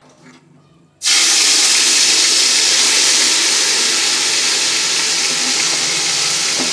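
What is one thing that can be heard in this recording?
A thick paste sizzles loudly in hot oil.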